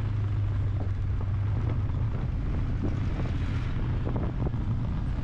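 A vehicle engine drones steadily while driving on a road.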